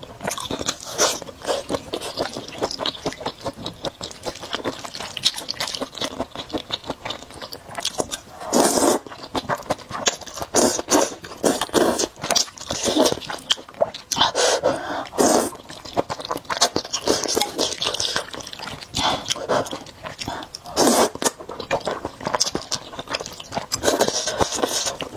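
A young woman chews wetly with her mouth close to the microphone.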